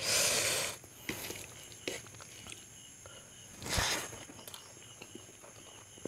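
Fingers squish and mix wet rice and curry.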